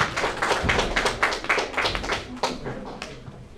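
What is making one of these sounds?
An audience claps and applauds in an echoing hall.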